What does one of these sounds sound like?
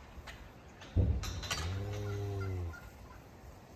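A cow moos softly up close.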